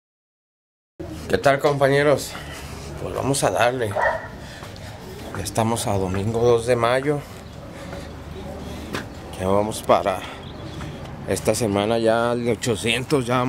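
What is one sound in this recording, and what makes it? A young man talks close to the microphone, casually.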